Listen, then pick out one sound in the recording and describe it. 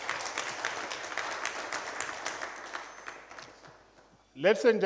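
A group of people applaud, clapping their hands, then the clapping fades out.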